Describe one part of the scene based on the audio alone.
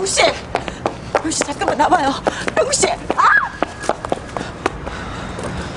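Footsteps and high heels click quickly on pavement.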